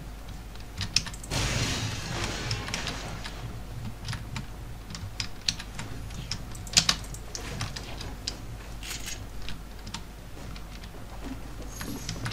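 Wooden building pieces clack sharply into place.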